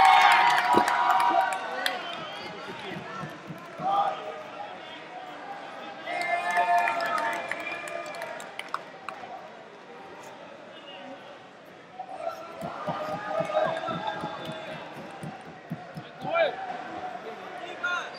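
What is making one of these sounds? A crowd cheers and chatters in a large echoing hall.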